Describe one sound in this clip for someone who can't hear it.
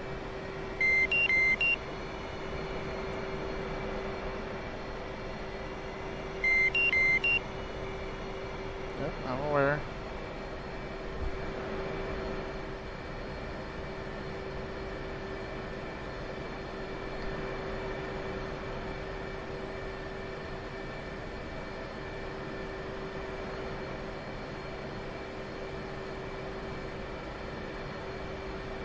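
A jet engine hums steadily at idle.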